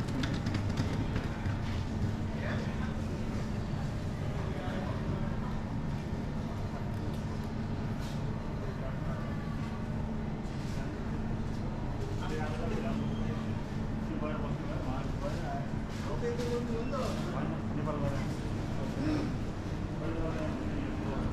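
Indistinct voices murmur in a large echoing indoor hall.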